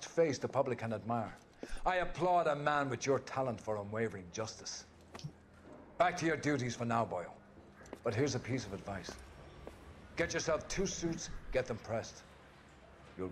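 A middle-aged man speaks firmly and with animation, close by.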